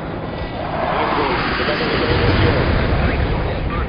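Explosions boom and fire roars.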